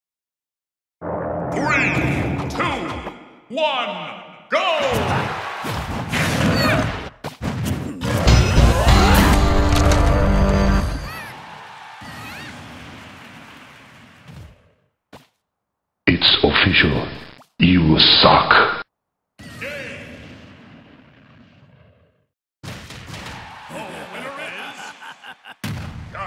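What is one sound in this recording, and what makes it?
Fighting game blows and effects whoosh and thud.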